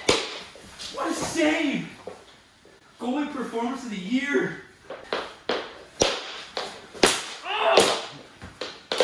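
A man shouts with excitement close by.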